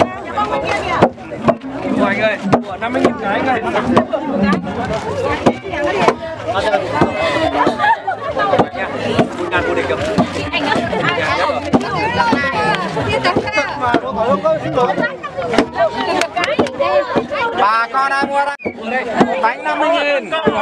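Several women chatter and talk nearby.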